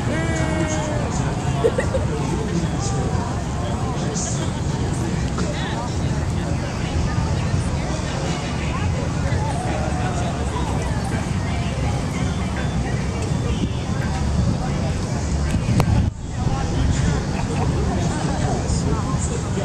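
A crowd of people chatters and shouts outdoors, some distance away.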